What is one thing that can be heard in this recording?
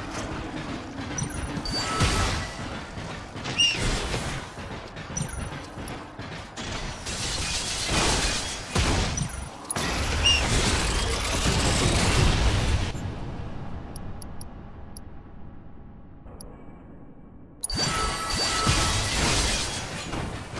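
Game weapons fire and zap in quick bursts.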